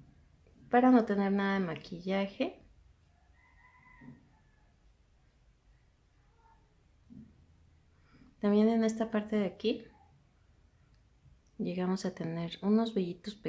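A woman speaks softly and close up, in short bursts.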